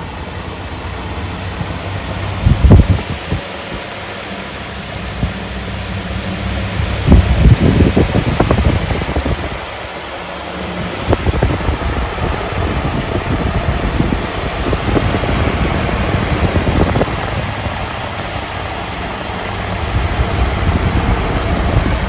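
An electric fan whirs steadily, its blades rushing air.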